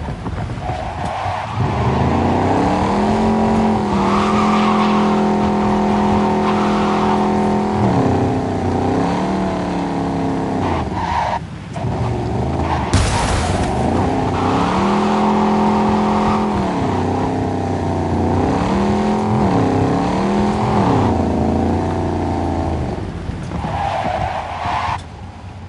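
Tyres screech as a car drifts around corners.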